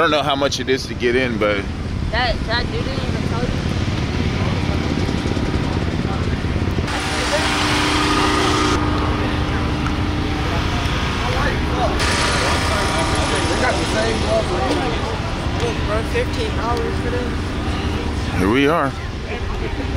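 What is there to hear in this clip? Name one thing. A crowd of people chatters outdoors in the background.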